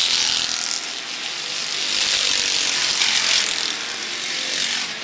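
Race car engines roar loudly, rising and falling as they pass.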